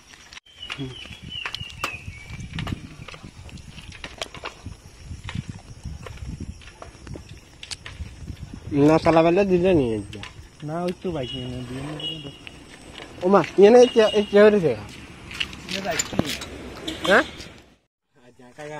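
A bicycle rattles and clatters over a rough paved path.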